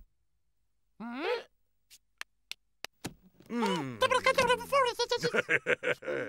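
A cartoon penguin chatters in a high, squeaky, babbling voice.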